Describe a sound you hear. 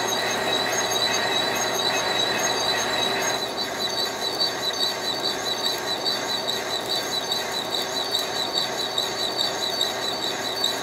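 A metal lathe whirs steadily as its chuck spins.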